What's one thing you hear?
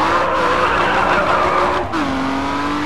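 Tyres screech loudly as a car drifts.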